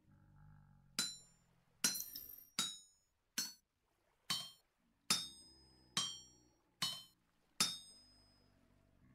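A hammer strikes metal on an anvil with sharp ringing clangs at a steady pace.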